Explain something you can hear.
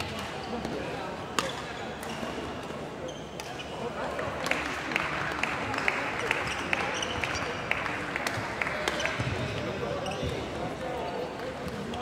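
Badminton rackets strike a shuttlecock back and forth in a large echoing hall.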